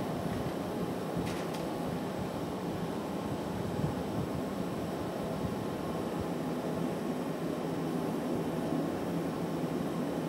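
A furnace roars steadily.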